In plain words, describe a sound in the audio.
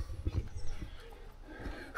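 A mallet knocks a tent peg into the ground.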